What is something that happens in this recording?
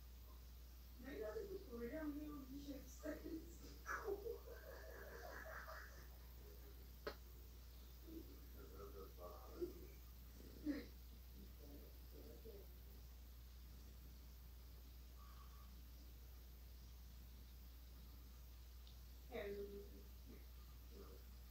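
A woman speaks softly and affectionately close by.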